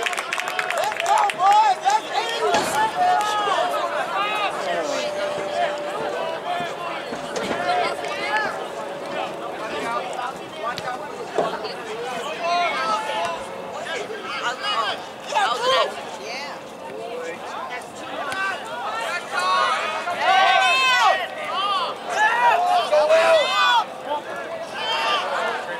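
A crowd of spectators cheers and shouts outdoors nearby.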